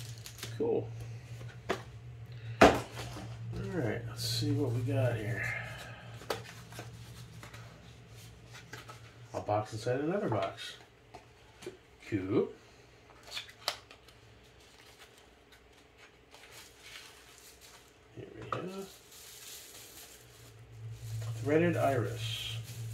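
Paper crinkles and rustles as a package is opened.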